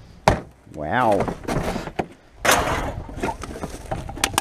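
Rubbish rustles and crinkles as a hand sorts through a bin.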